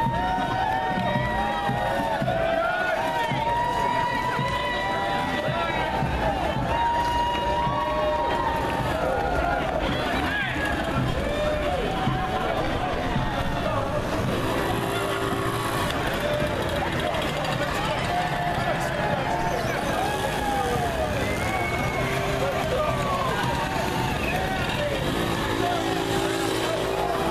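A crowd of people chatters and calls out along a street outdoors.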